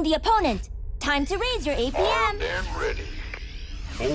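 Laser guns fire in quick bursts.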